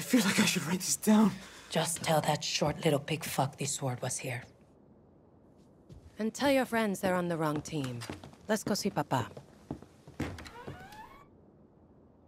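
A young woman speaks firmly and with attitude.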